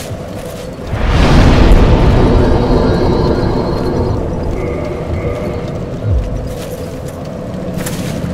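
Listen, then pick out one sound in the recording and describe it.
A bonfire crackles.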